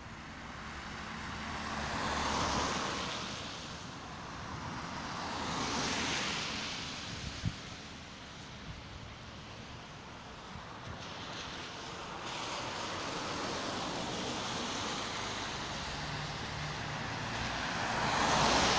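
Cars swish past one by one on a wet road.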